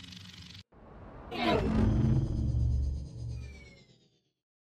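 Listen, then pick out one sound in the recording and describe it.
A loud, booming victory fanfare plays and then fades away.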